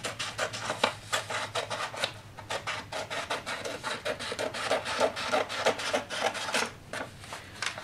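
Scissors snip rapidly through a sheet of paper.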